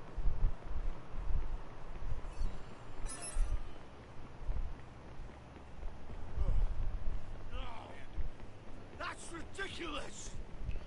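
Footsteps slap quickly on pavement as someone runs.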